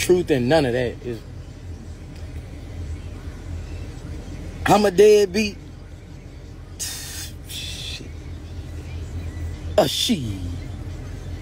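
A man sings and talks expressively, close to a phone microphone.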